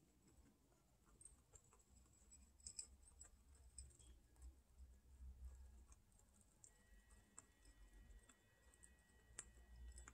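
Guinea pigs crunch and nibble dry food pellets up close.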